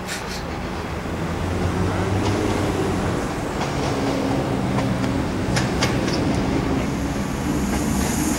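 A second train approaches with a low, growing hum.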